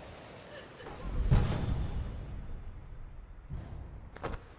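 A deep booming whoosh swells and slowly fades.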